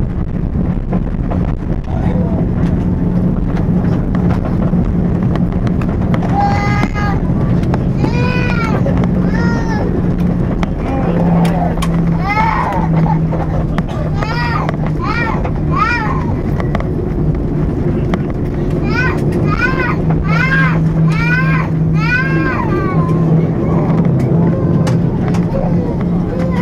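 Jet engines hum with a steady low drone.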